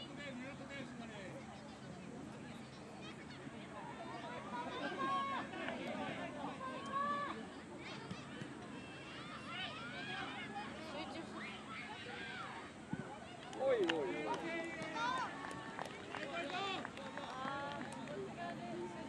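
Young players shout and call out across an open field outdoors.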